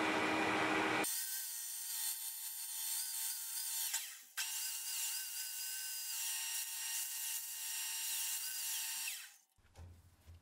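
An angle grinder whines loudly against a spinning wheel.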